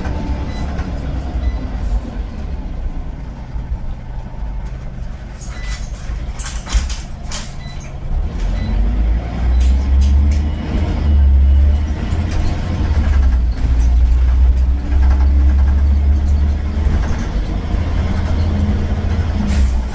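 A bus engine rumbles low and steady, growing louder as the bus pulls away.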